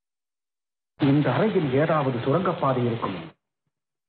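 A man speaks loudly and theatrically, as if declaiming.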